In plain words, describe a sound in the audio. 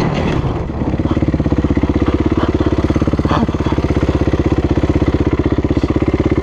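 A four-stroke motocross bike's engine pulls hard on the throttle.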